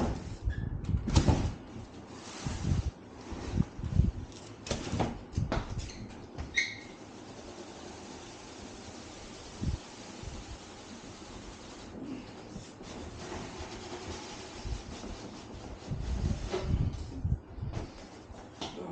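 A large cardboard box thumps and scrapes as it is moved.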